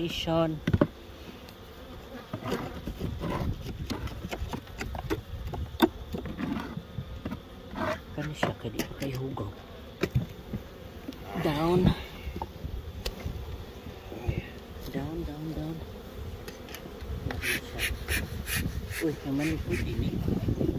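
Bees buzz around the hives.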